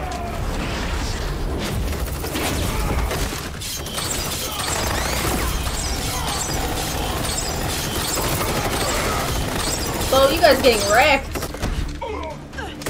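Gunfire and action noise rumble from a loudspeaker.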